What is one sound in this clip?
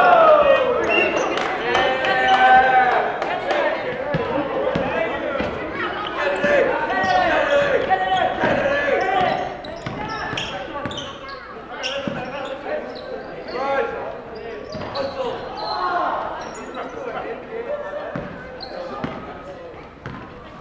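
Spectators in the stands talk and cheer loudly.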